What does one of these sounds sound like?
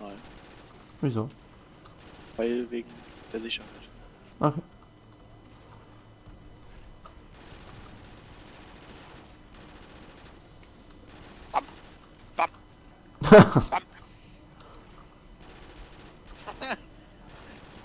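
A gun fires in short, loud bursts of shots.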